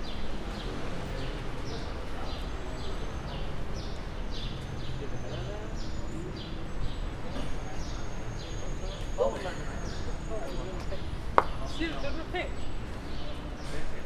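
Footsteps tap steadily on a cobbled street outdoors.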